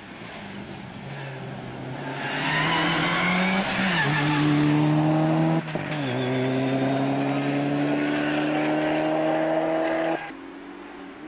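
A rally car engine roars up close and revs hard as the car speeds past.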